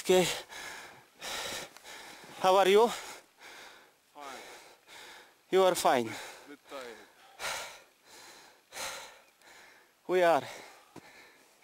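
A man talks with animation outdoors.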